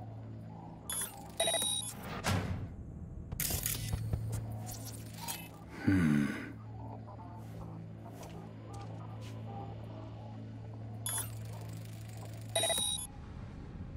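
Short electronic beeps and chirps sound now and then.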